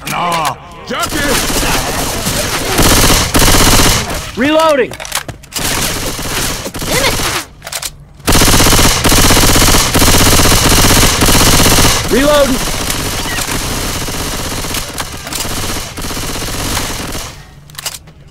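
Gunfire rattles in rapid bursts, loud and close.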